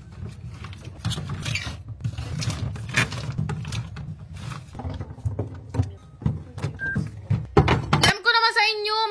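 Plastic drink pouches crinkle and rustle as a hand shifts them.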